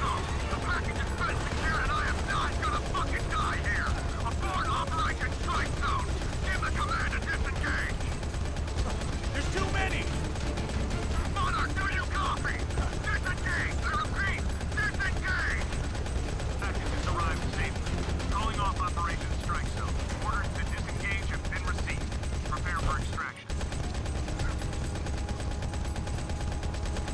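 A speedboat engine roars across water.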